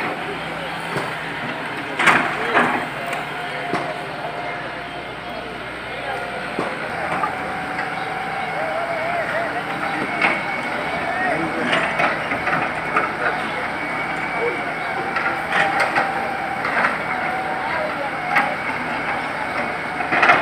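An excavator engine rumbles steadily in the distance.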